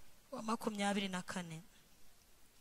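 A woman speaks into a microphone over loudspeakers in a large hall.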